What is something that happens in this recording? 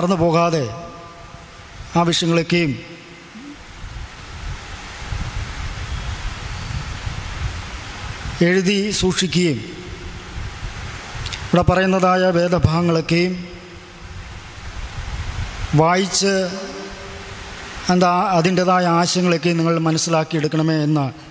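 A man speaks slowly and deliberately into a microphone, with pauses between phrases.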